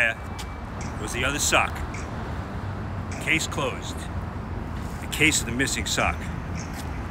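An elderly man speaks with animation close by, outdoors.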